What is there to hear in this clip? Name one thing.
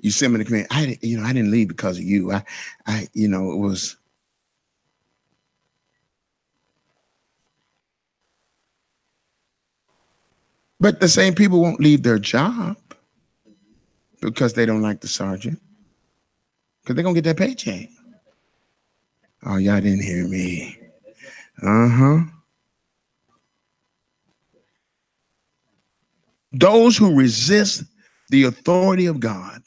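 A middle-aged man speaks into a microphone with long pauses, heard through a loudspeaker.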